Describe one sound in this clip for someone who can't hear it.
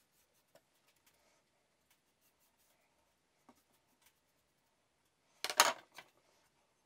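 Small taps and knocks come from items being handled.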